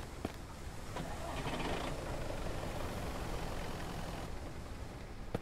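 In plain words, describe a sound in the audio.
A car engine starts and runs steadily.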